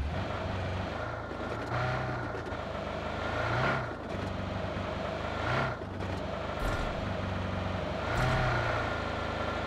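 A car engine hums steadily and revs up and down as it drives over rough ground.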